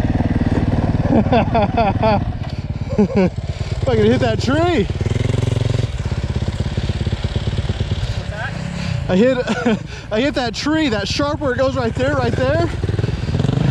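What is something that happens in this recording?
A dirt bike engine revs up and down sharply, close by.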